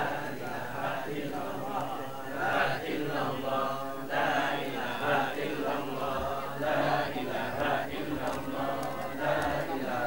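Men and women talk and murmur all around, close by.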